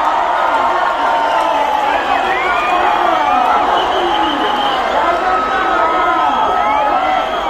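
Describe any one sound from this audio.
Many people whistle loudly in a crowd.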